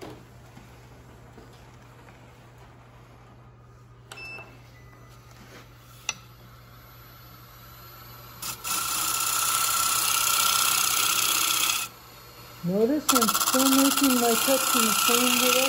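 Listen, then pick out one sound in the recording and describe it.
A wood lathe motor hums steadily.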